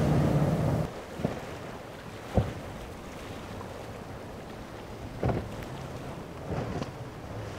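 A powerboat engine roars loudly, then settles to a steady drone.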